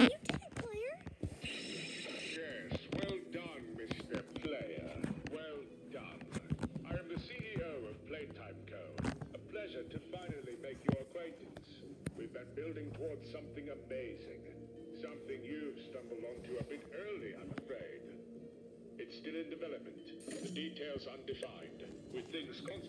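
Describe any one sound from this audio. A cartoon soundtrack plays through a small tablet speaker.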